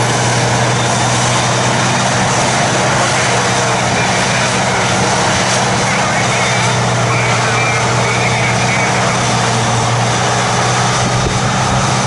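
A large harvester engine drones loudly and steadily close by.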